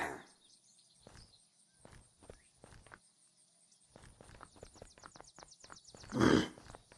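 Footsteps patter quickly on hard pavement.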